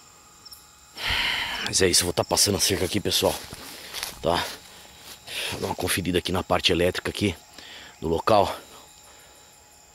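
Dry grass and brush rustle close by.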